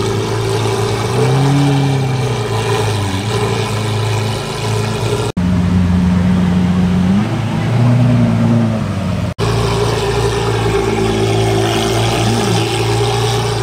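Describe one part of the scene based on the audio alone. A sports car engine revs briefly and settles back down.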